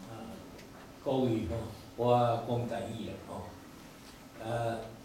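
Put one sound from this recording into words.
An elderly man speaks into a microphone, heard over loudspeakers.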